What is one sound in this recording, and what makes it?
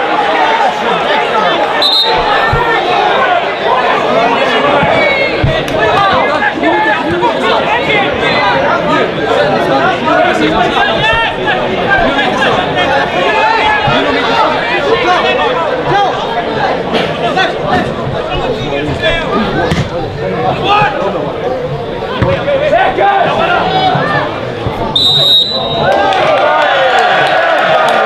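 Men on a pitch shout to one another.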